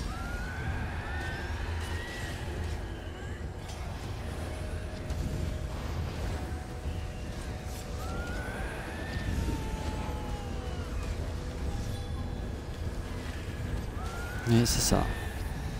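Swords clash and spells burst in a battle.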